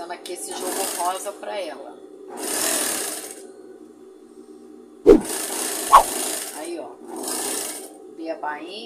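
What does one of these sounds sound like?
A sewing machine runs in short, fast bursts of stitching.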